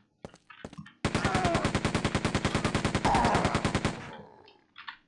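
A machine gun fires rapid bursts in a video game.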